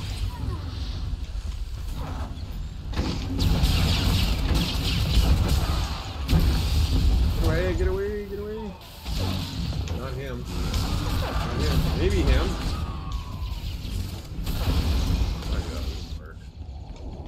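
Blaster shots and energy blasts crackle rapidly during a battle.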